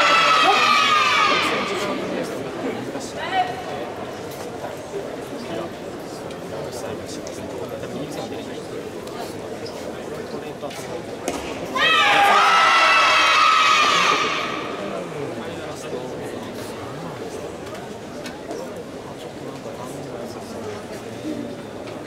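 A crowd of young people murmurs and chatters in a large echoing hall.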